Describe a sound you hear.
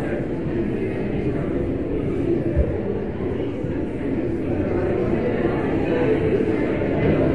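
A crowd of adults chatter at once in a room with a slight echo.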